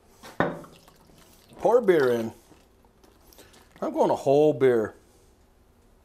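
Beer glugs from a bottle into a simmering sauce.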